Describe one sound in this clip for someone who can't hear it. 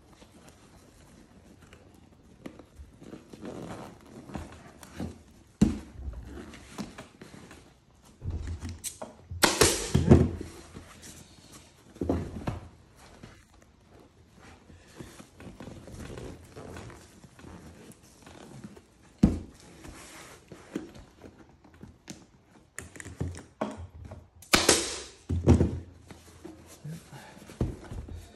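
Stiff fabric and foam rustle and crinkle as they are handled.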